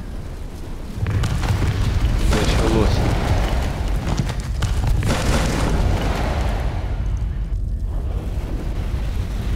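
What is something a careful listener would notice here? A ball of fire roars and crackles.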